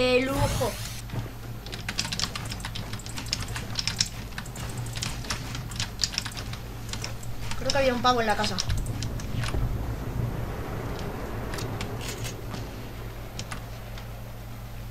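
Quick wooden clacks sound as building pieces snap into place.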